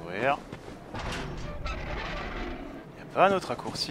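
A heavy iron gate creaks open.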